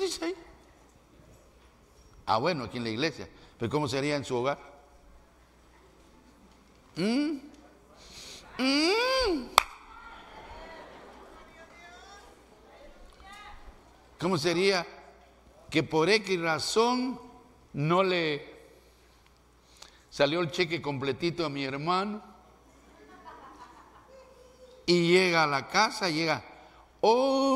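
A man preaches with animation through a microphone, in bursts with pauses, in a large echoing hall.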